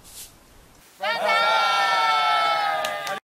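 A group of young men and women shout together outdoors.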